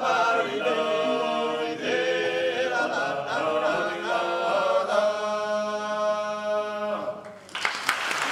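A group of men sing together in harmony in a large echoing hall.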